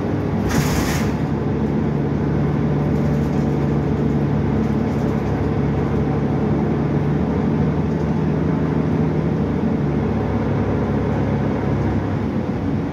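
A bus engine hums and rumbles steadily from inside the bus.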